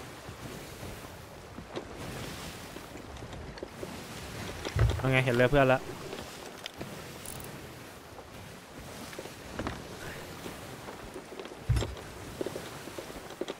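Wind blows steadily.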